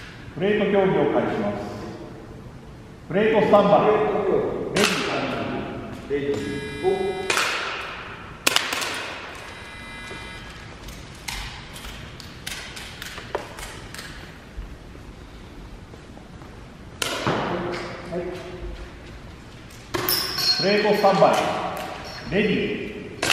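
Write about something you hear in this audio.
A man speaks nearby in an echoing hall.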